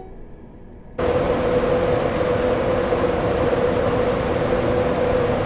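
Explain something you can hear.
A locomotive roars loudly past close by.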